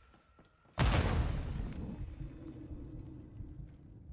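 A loud blast booms and rumbles away.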